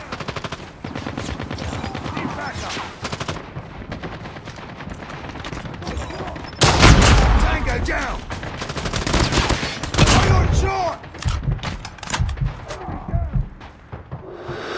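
Rapid gunfire rattles in quick bursts.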